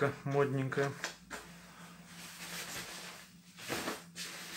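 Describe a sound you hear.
Nylon jacket fabric rustles and swishes.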